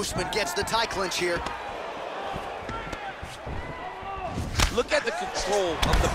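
Punches and knees land with heavy thuds.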